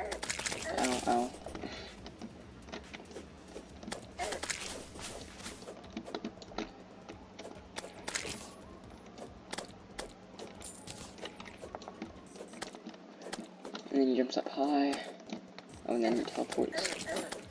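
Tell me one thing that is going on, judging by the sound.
A large slime squelches as it bounces and lands.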